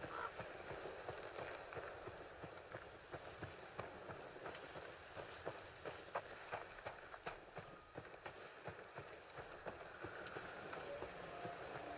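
Footsteps crunch through leaves and undergrowth at a steady walking pace.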